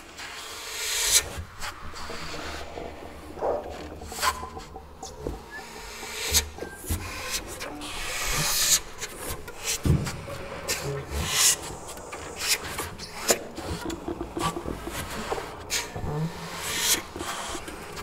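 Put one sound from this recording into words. A soprano saxophone plays with breathy, clicking sounds.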